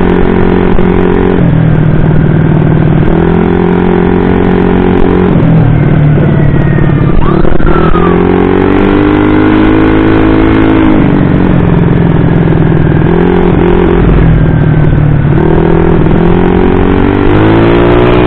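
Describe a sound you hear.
A tuned bored-up scooter engine revs up and down as it rides along a road.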